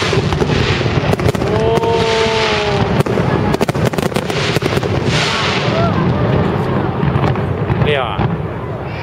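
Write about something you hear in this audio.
Fireworks burst with loud booms and sharp cracks.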